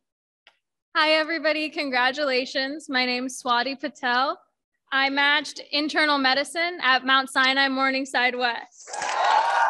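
A young woman speaks with excitement through a microphone.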